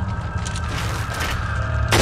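Flames crackle and burn.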